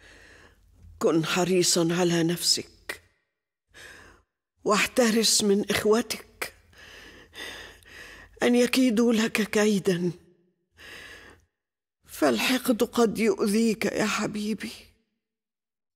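An elderly woman speaks with emotion, close by.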